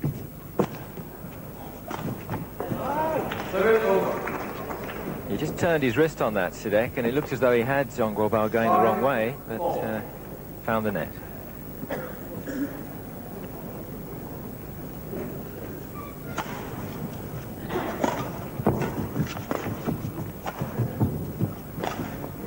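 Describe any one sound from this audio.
A racket strikes a shuttlecock with sharp pops.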